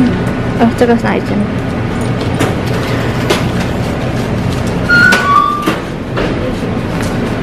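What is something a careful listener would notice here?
Paper banknotes rustle and flick as they are counted.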